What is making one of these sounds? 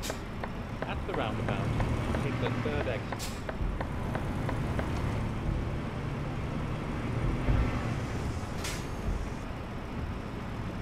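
A diesel truck engine rumbles as the truck cruises, heard from inside the cab.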